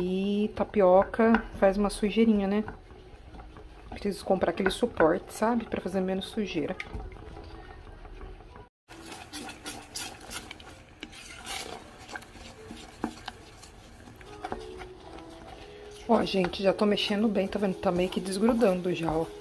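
A wooden spoon stirs thick batter in a metal pot, scraping softly.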